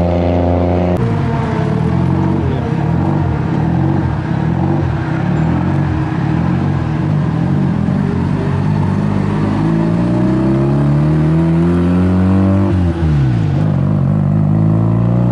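A second car engine revs loudly, rising and falling in pitch.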